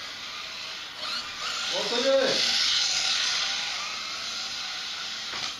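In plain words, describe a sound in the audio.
Small electric motors whine loudly as toy race cars speed past.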